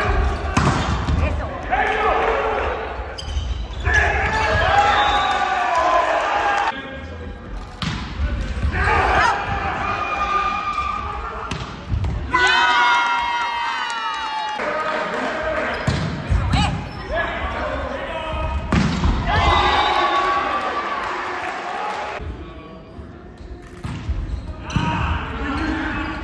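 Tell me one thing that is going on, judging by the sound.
Volleyball players shout and call out to each other in a large echoing gym.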